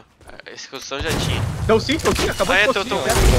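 A rocket whooshes past with a fiery roar.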